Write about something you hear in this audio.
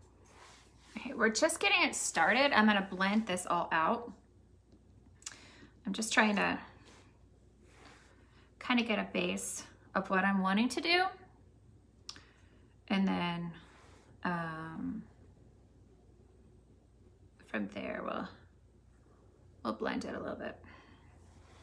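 A woman talks calmly and closely, in short bursts with pauses.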